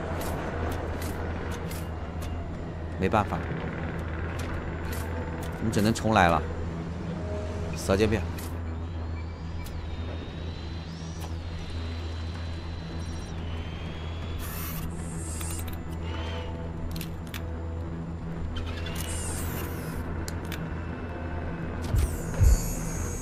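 A small remote-controlled car's electric motor hums steadily as it drives.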